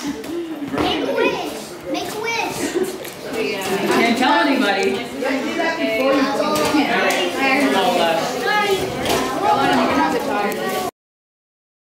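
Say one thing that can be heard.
Several people chatter and talk over one another close by.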